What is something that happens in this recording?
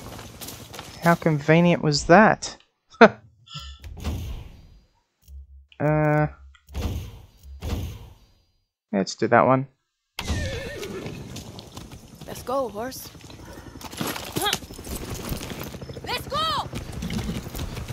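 A horse whinnies and neighs several times.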